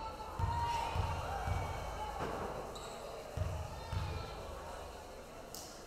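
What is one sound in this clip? A basketball bounces on a wooden floor in an echoing gym.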